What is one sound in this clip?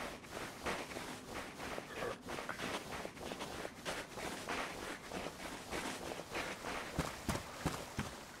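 Footsteps crunch steadily through snow.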